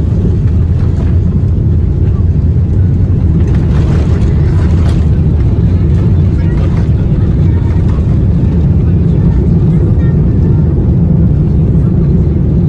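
Jet engines roar steadily as an airliner taxis.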